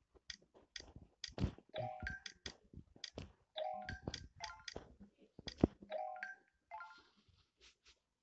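Short bright chimes ring out as game letters are linked, each a little higher than the last.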